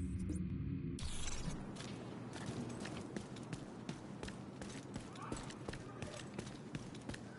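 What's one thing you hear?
Footsteps tread steadily over a street.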